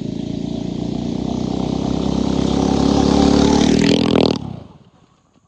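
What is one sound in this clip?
A small engine revs hard and then cuts out.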